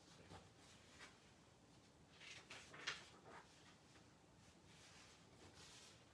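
Pages of a book rustle as they turn.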